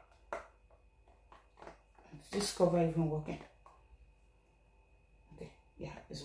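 A plastic lid clicks and rattles on a jar.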